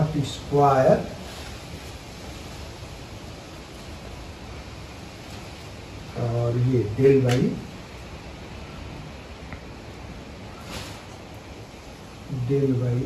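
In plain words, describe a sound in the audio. A man speaks calmly in short bursts, close by.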